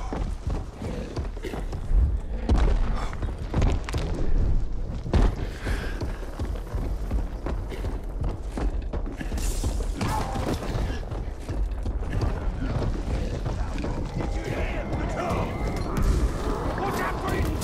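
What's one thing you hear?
A huge beast stomps along with heavy, thudding footsteps.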